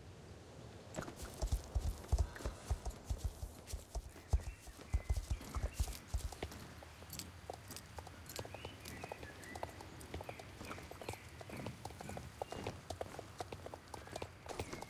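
A horse's hooves thud rhythmically as it gallops over grass.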